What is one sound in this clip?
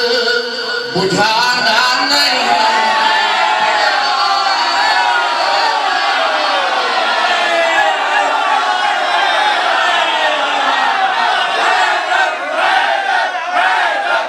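A crowd of men chant loudly together.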